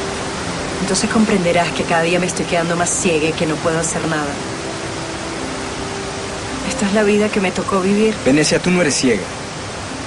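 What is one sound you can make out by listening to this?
A young woman speaks softly and earnestly close by.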